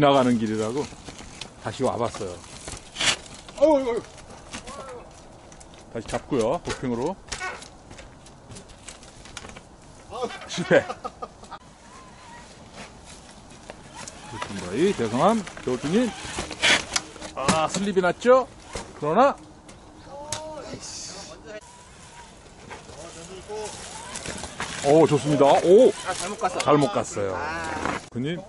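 Mountain bike tyres thump and scrape over rocks.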